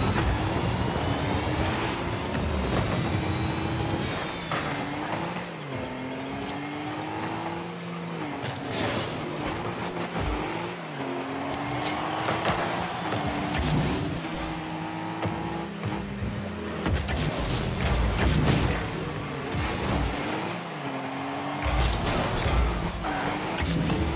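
A game car engine hums and rises and falls in pitch as it speeds about.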